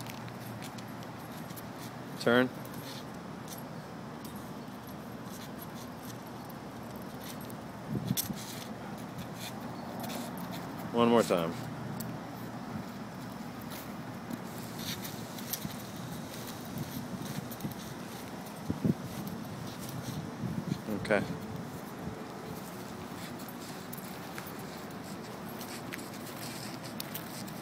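Footsteps scuff on concrete outdoors.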